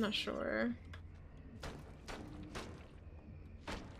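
A knife chops into meat on a wooden board.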